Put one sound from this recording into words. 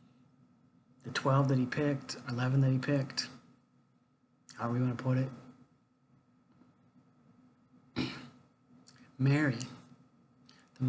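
An older man speaks calmly and close to the microphone, in short bursts with pauses.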